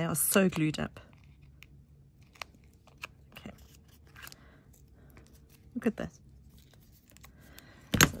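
Scissors snip through thin cardboard.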